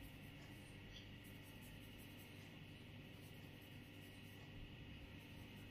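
Fingers rub and scratch softly through hair close by.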